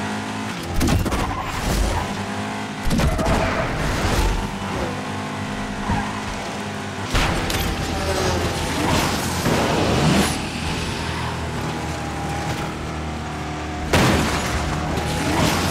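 A car engine roars steadily at high speed.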